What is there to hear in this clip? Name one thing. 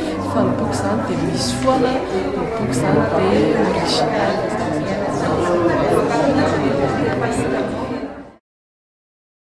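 A woman speaks calmly and clearly close to a microphone.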